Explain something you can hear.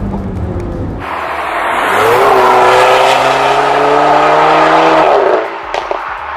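Tyres hiss on asphalt as a car passes.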